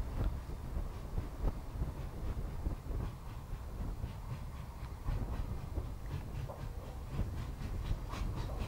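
Steel wheels clank and rumble over rail joints.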